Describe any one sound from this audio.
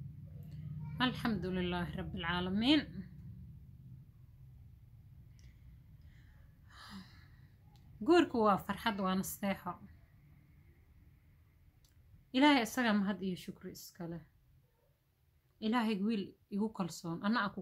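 A young woman speaks calmly and close to a microphone, in short phrases with pauses.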